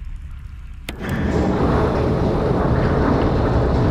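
A heavy lift rumbles and grinds as it moves.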